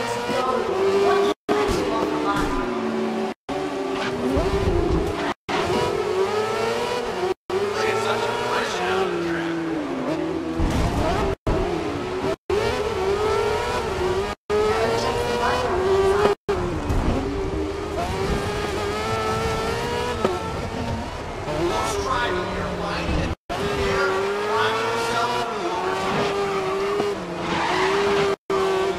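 Racing car engines whine loudly, rising and falling in pitch as gears shift.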